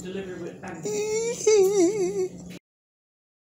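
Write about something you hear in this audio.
A newborn baby fusses and whimpers softly close by.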